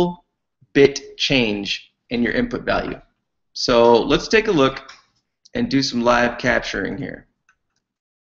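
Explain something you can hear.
A man talks calmly into a nearby microphone, as if on an online call.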